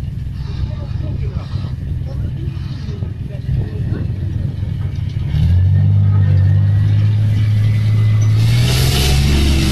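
Steel tracks clatter on an asphalt road.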